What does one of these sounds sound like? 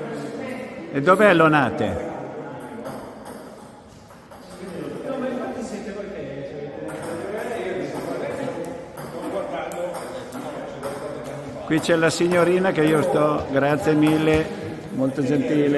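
A young woman talks with animation close by in an echoing hall.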